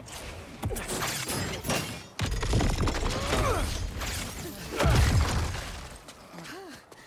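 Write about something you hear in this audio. Concrete slabs crash and rubble clatters.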